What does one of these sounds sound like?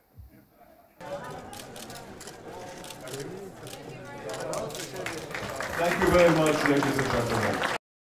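Several men talk and chat close by.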